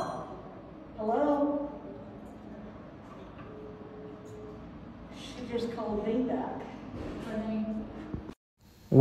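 An elderly woman talks loudly a short distance away.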